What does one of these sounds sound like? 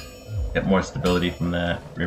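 A hammer strikes metal on an anvil.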